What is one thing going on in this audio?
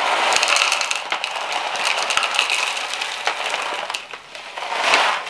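Loose potting mix pours and rattles from a bag.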